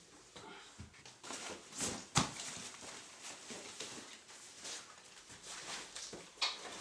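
A backpack's fabric rustles as hands handle it.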